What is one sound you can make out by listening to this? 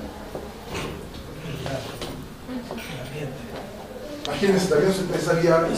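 A man speaks calmly, as if lecturing, heard through a microphone.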